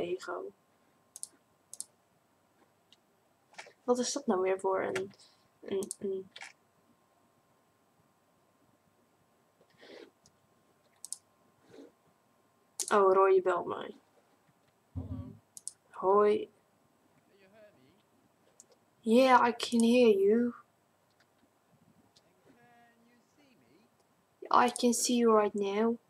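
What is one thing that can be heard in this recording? A young woman talks casually into a close microphone, in short bursts with pauses.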